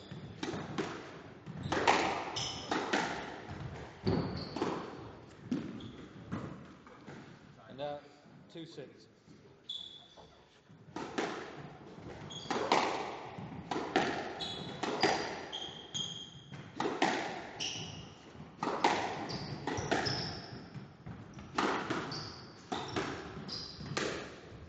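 A squash ball smacks hard against the walls and racquets, echoing in a large court.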